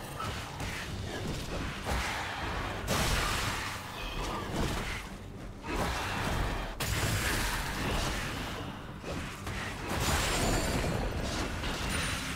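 Video game spell effects crackle and burst during a fight.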